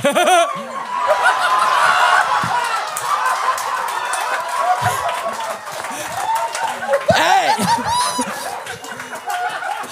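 Several men laugh loudly close by.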